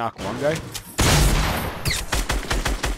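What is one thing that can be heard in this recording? Gunshots crack in quick succession.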